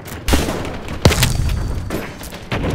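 An explosion booms with a heavy rumble.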